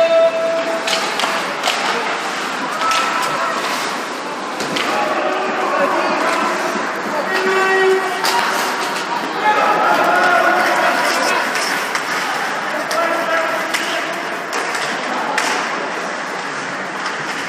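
Skates scrape across ice in a large echoing rink.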